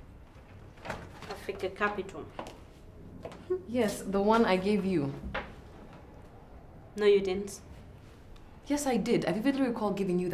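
Another young woman answers calmly nearby.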